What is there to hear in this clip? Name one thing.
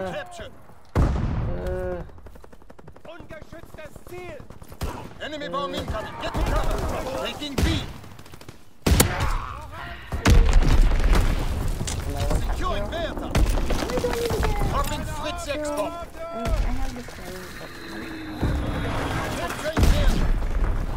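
Shotguns fire in loud, sharp booms.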